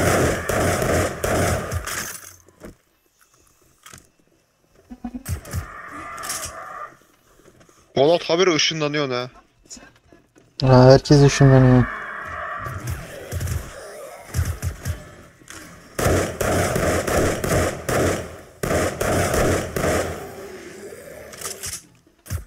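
A gun fires bursts of loud shots.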